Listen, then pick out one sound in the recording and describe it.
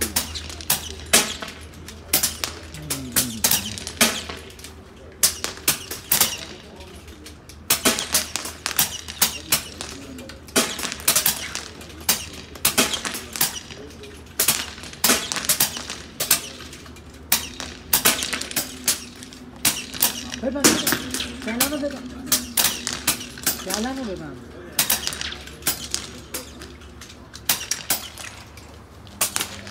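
Rifle shots crack sharply again and again, close by and outdoors.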